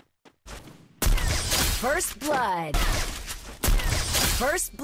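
A sniper rifle fires loud shots.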